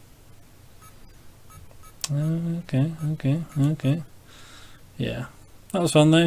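A game menu blips as a cursor moves between choices.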